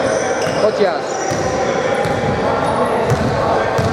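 A basketball bounces with echoing thuds.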